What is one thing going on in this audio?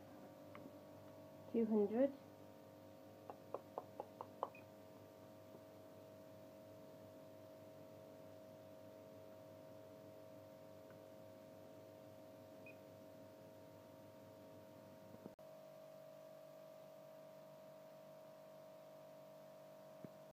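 An oven fan hums steadily.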